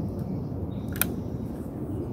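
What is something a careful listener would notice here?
A wooden rifle clacks once as a man raises it to his shoulder.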